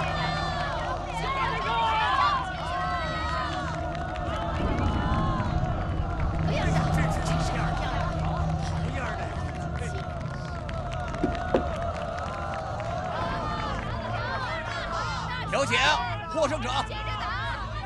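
A crowd of men cheers and shouts loudly outdoors.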